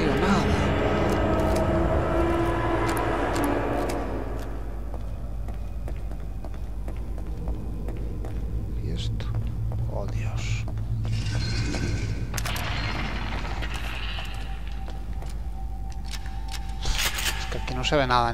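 Footsteps scuff slowly on a gritty floor.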